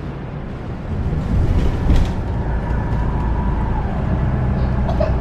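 A bus engine hums steadily from inside.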